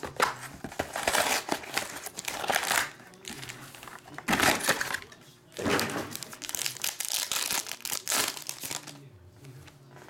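Foil card wrappers crinkle and rustle loudly.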